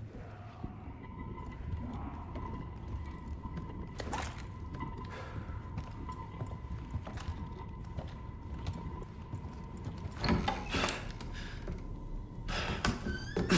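Footsteps thud on creaky wooden boards.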